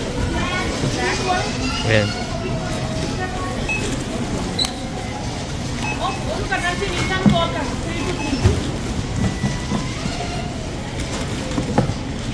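Plastic shopping bags rustle as groceries are packed.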